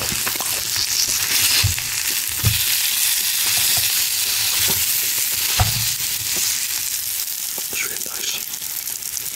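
Food sizzles steadily on a hot stone.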